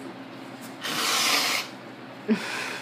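A young man blows his nose into a tissue.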